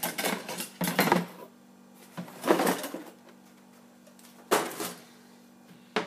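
Cardboard tags rustle as they are pulled from a box.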